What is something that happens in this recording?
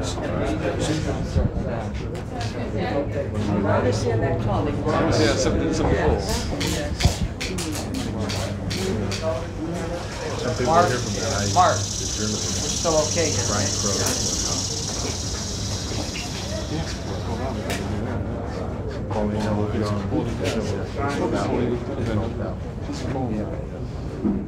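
An elderly man speaks calmly and warmly, close by.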